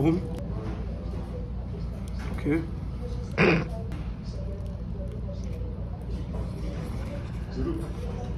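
Foil crinkles in a man's hands.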